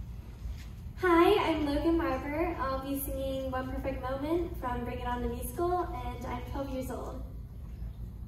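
A young girl sings into a microphone over a loudspeaker.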